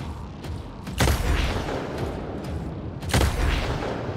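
A loud blast booms.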